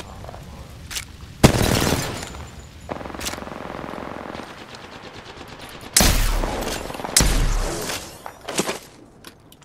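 Gunshots bang loudly in bursts.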